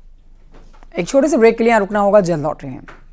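A young woman speaks clearly and calmly into a microphone.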